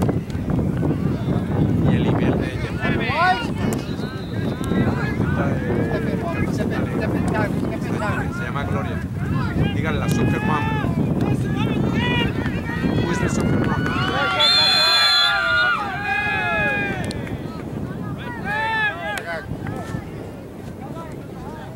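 Spectators on the sidelines shout and cheer outdoors.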